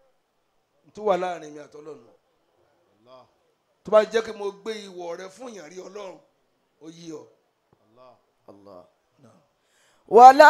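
An elderly man speaks with animation into a microphone, with pauses between phrases.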